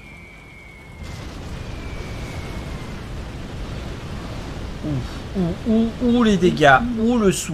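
A huge explosion roars and rumbles.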